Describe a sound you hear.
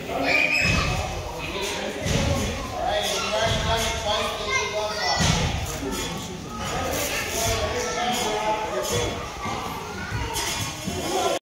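Young children chatter and call out in a large echoing room.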